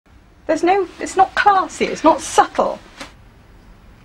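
A young woman speaks with agitation, close by.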